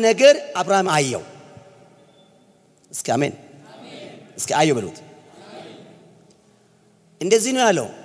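A man preaches forcefully into a microphone, in bursts, in an echoing hall.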